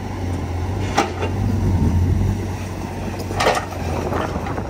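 Clods of earth thud and clatter as they are dumped.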